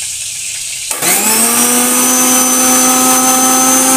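A mixer grinder motor starts up and whirs steadily.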